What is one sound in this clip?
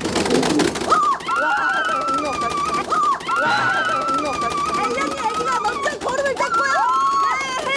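An arcade game plays bright electronic music and sound effects.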